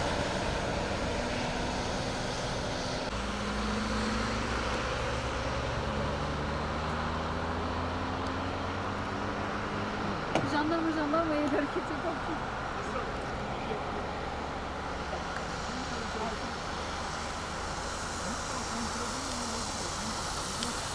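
Traffic rumbles and hisses on a wet road nearby.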